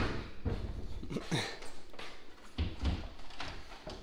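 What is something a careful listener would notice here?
Something heavy bumps and thuds against a cabinet shelf.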